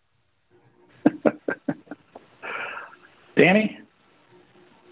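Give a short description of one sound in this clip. A second man speaks briefly over a thinner-sounding online call.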